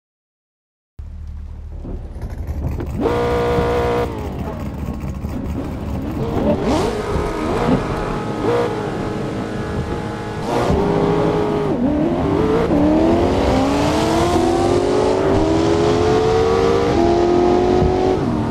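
A race car engine revs and roars, rising in pitch as it speeds up.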